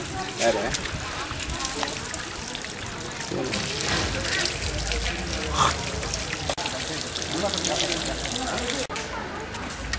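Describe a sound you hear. Water runs from taps and splashes.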